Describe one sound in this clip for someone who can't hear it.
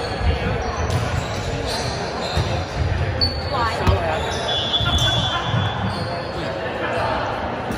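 Young people chatter and call out in a large echoing gym.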